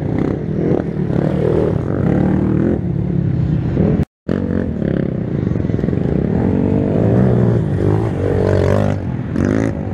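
A quad bike engine revs and roars close by.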